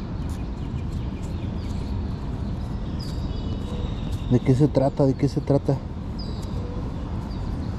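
Fingers rub grit off a small coin.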